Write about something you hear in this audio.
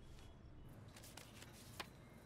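Playing cards flick and rustle as they are handled.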